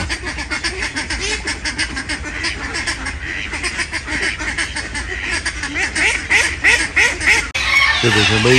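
Many ducks quack busily nearby.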